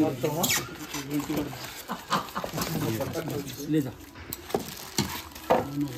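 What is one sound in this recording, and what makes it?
Foam packing squeaks and creaks as it is pulled apart.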